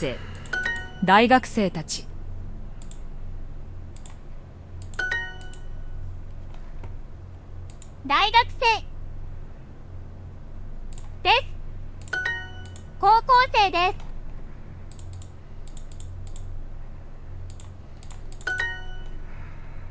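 A bright electronic chime rings out.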